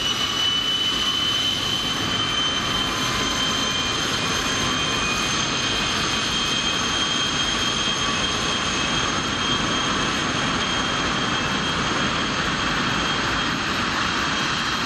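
A jet engine whines loudly and steadily at idle, with a high shrill tone.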